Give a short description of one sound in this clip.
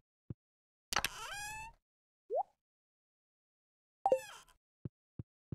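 A door opens and shuts with a rattle.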